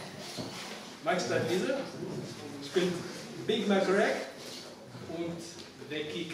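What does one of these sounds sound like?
A young man reads out aloud in a room with a slight echo.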